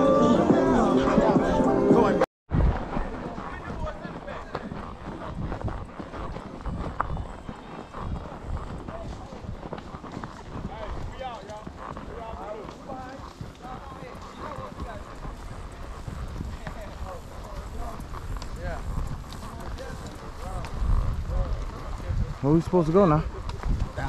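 A horse's hooves clop steadily on a dirt trail.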